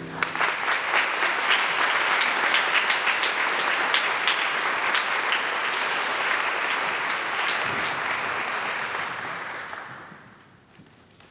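An audience applauds in a large echoing hall, then the clapping fades away.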